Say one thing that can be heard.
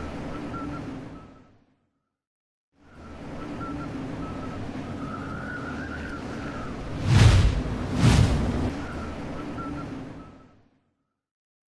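Wind rushes past high in the air.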